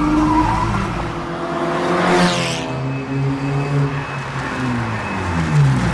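Tyres hiss on a wet track as a car passes.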